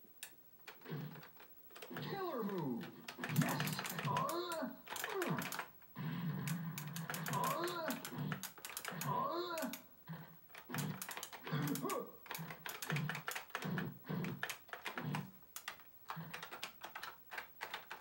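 Punches and kicks thud in a video game from a television speaker.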